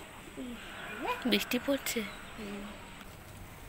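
A woman talks in a high, coaxing voice close by.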